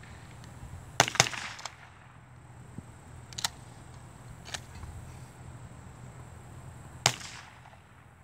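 Shotgun blasts boom loudly outdoors, each followed by a short echo.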